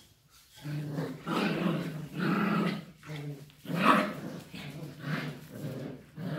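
A dog growls playfully.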